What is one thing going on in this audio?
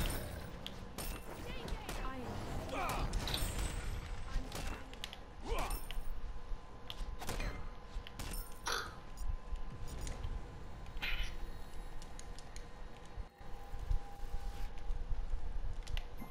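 Magical blasts whoosh and burst.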